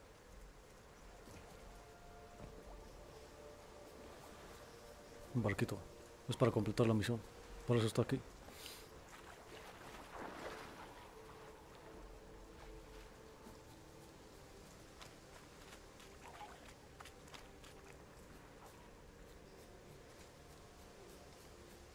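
Footsteps rustle through tall grass at a quick pace.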